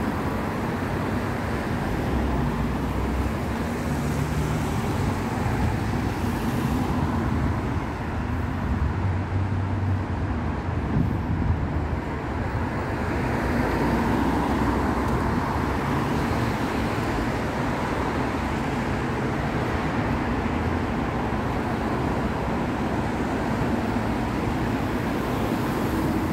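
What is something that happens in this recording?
City traffic rumbles steadily along a street outdoors.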